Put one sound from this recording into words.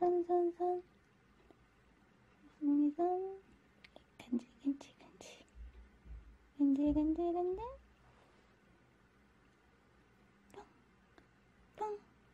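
A kitten mews in short, high cries close by.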